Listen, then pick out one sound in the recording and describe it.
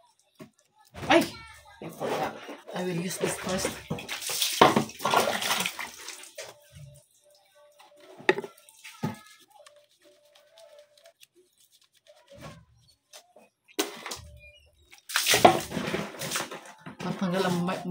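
Water splashes as a woman pours it.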